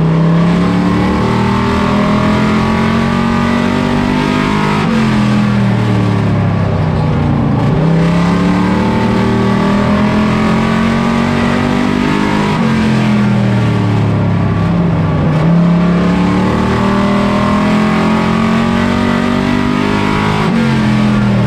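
A loud race car engine roars close by, rising and falling in pitch as it shifts and slows for corners.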